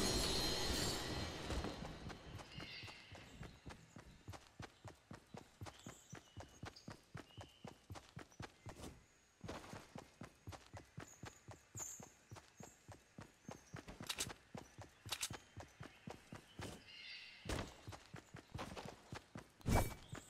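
Footsteps patter quickly on grass as a game character runs.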